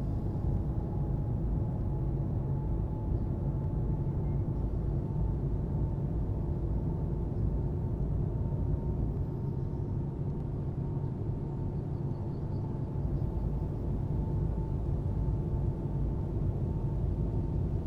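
Tyres crunch and rumble over a rough dirt road.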